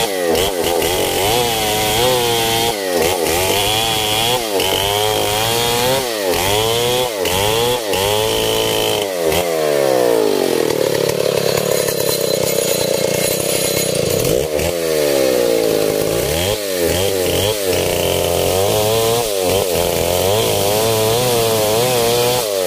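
A chainsaw chews through a log.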